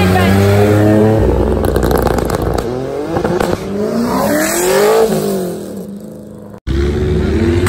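A sports car accelerates away.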